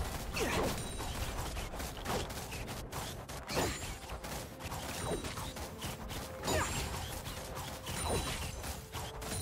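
Spell effects whoosh and crackle in quick bursts.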